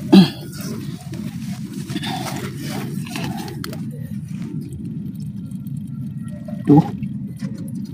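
Soil crumbles and rustles as a hand reaches into a burrow.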